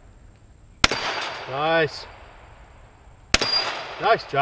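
A pistol fires loud single shots outdoors, echoing briefly.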